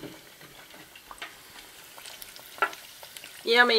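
Hot oil sizzles and crackles in a deep fryer.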